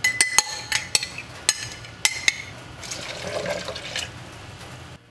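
Milk pours and splashes into a plastic jug.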